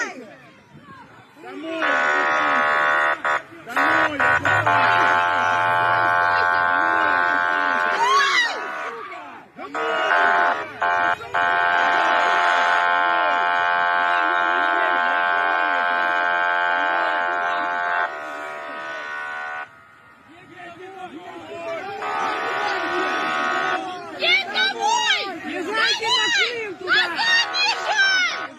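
A crowd of men and women shouts angrily close by.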